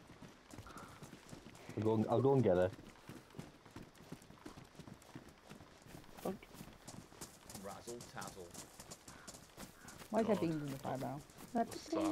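Footsteps crunch over grass and gravel.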